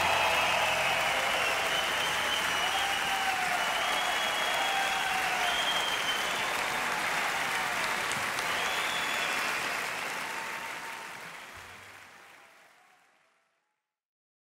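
A large crowd applauds and cheers in a big echoing hall, then fades away.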